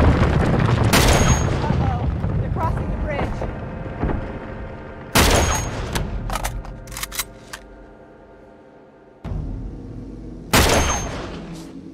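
A sniper rifle fires loud single shots.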